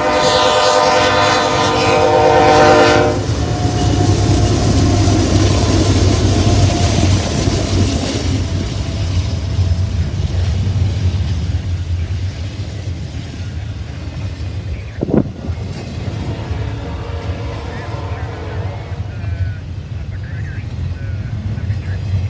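A long freight train rumbles and rattles past on the tracks.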